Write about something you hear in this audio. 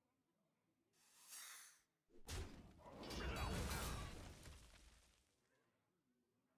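Game sound effects whoosh and crash loudly.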